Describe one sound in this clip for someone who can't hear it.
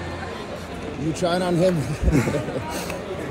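A young man speaks excitedly close by.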